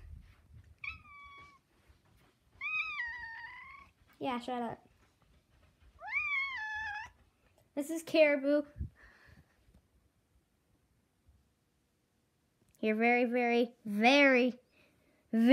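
A cat meows loudly and repeatedly, up close.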